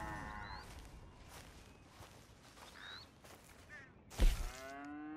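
Footsteps swish through grass outdoors.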